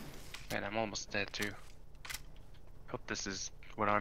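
A rifle is reloaded with metallic clicks.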